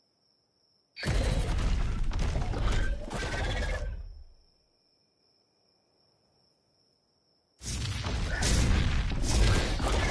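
Wind rushes loudly past a flying creature as it swoops.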